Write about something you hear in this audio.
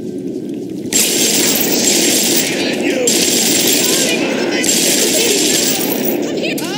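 A machine gun fires in a rapid, loud burst.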